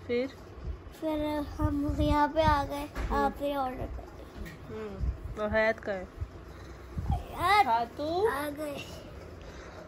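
A young boy talks playfully, close by.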